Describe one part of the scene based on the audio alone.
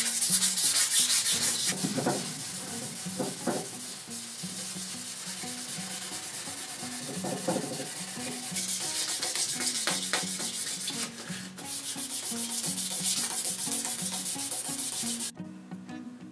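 Sandpaper rubs briskly back and forth across wood.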